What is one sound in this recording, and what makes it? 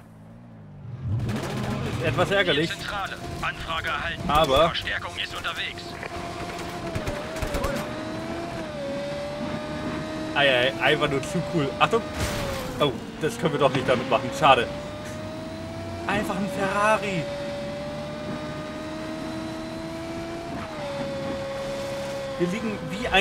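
A racing car engine whines steadily at high speed, rising and falling in pitch.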